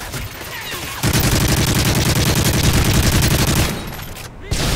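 Rapid gunfire rattles in a long burst.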